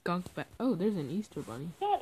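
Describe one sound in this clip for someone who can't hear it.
A pig grunts close by.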